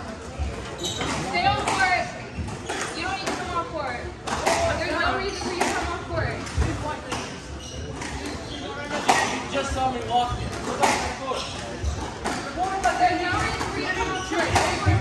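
A squash ball smacks sharply off the walls and racquets, echoing in a large hall.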